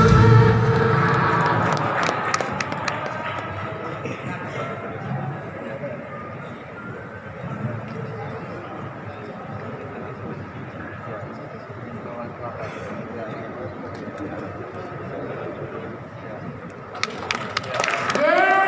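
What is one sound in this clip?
A band plays amplified music in a large echoing hall.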